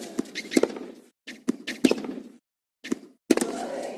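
A tennis racket strikes a tennis ball.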